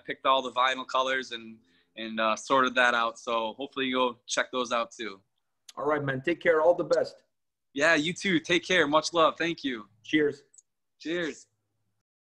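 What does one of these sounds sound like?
A young man talks cheerfully over an online call.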